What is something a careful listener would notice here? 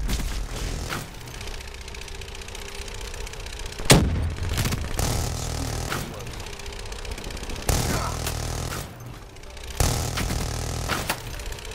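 Machine gun fire rattles in rapid bursts.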